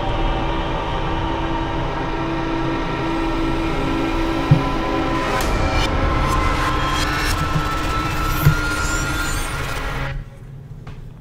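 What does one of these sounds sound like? A shimmering magical tone swells and builds, then cuts off abruptly.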